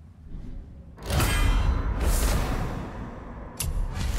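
A shimmering magical chime rings out.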